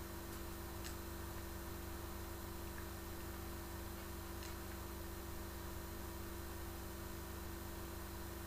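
Video game sound effects play from a television speaker.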